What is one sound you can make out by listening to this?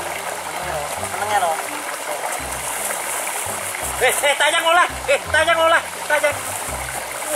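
Young men laugh and talk loudly, close by.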